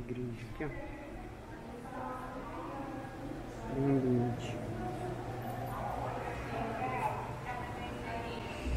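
Men and women chat quietly at a distance in a large echoing hall.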